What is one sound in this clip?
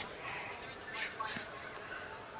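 A ball thuds onto grass.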